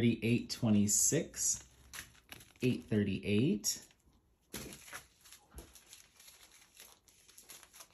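Plastic bags crinkle as they are handled.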